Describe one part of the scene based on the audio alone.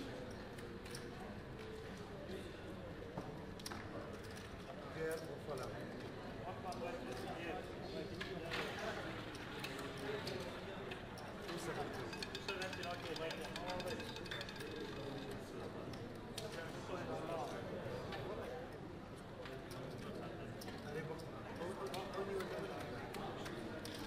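Plastic casino chips clack and click as they are stacked and sorted.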